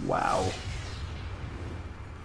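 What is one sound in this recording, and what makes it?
Electric magic crackles and zaps in a game.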